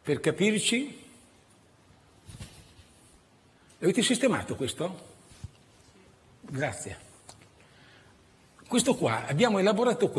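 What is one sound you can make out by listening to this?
An elderly man speaks calmly through a microphone in a large room, in short phrases with pauses.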